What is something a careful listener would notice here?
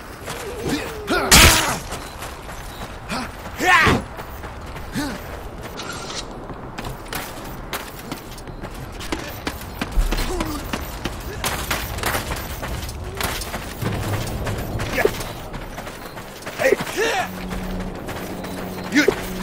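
Armoured warriors shout in battle.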